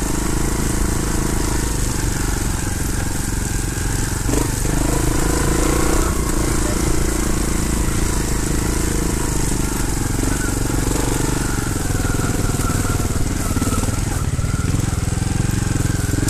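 Tyres crunch and rattle over rocky dirt.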